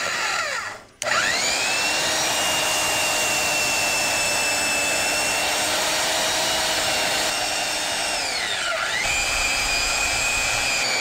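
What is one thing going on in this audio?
A power tool whirs steadily with a high whine, briefly dipping in pitch.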